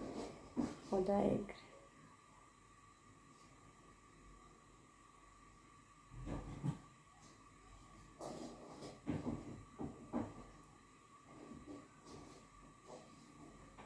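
A young woman speaks calmly and close by, with pauses.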